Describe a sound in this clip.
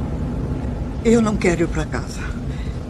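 A man speaks briefly and loudly, close by.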